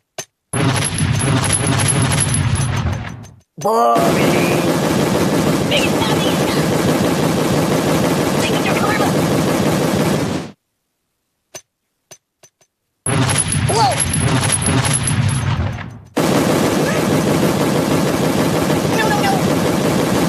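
Explosions boom one after another in quick bursts.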